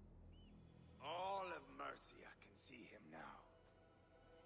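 A man shouts mockingly.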